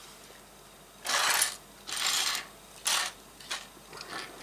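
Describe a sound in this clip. Plastic toy bricks click and rattle as they are handled.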